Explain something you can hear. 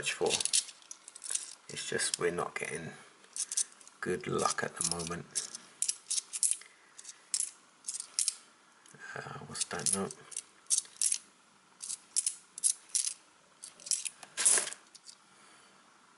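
Metal coins clink and tap together in someone's hands.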